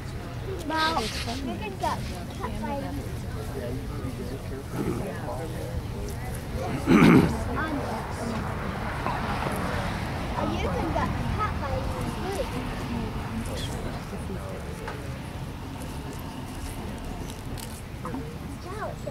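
A crowd of men, women and children chat quietly outdoors nearby.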